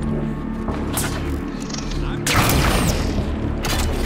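An energy weapon fires with a loud crackling blast.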